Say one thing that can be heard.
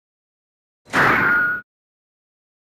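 A short menu chime sounds.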